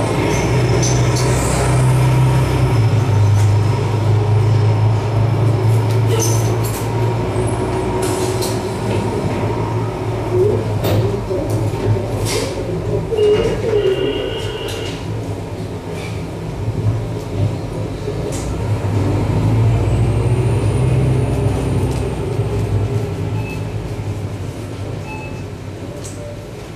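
Electronic music plays a deep, droning hum that swells and eases.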